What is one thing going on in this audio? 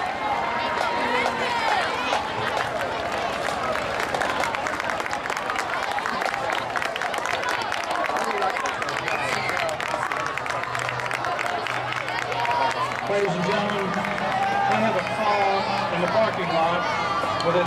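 A marching band plays brass and drums outdoors.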